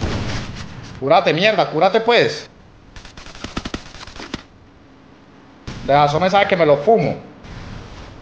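A young man speaks excitedly into a close microphone.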